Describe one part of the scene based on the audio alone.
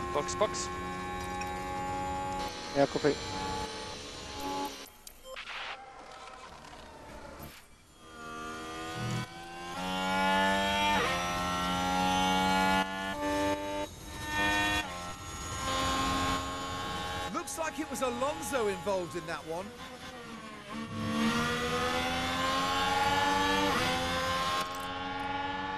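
A racing car engine screams at high revs, its pitch rising and falling with gear changes.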